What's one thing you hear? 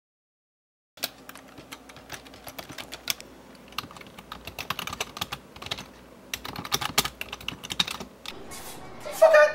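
Keyboard keys click rapidly.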